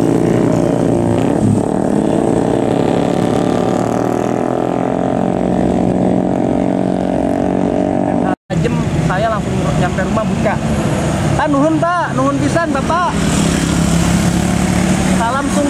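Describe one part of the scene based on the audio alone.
Motorcycle engines buzz past.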